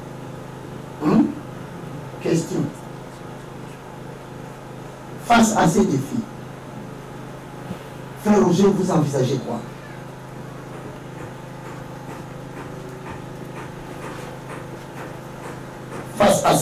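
A man speaks in short, forceful bursts with long pauses through a microphone.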